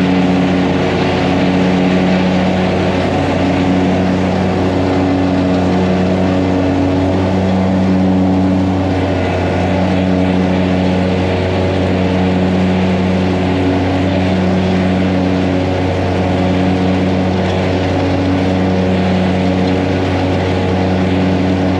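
A lawn mower engine drones steadily close by.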